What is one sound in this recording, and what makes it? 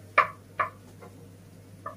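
A knife taps on a wooden chopping board.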